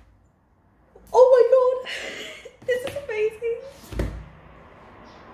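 A young woman squeals and laughs excitedly close by.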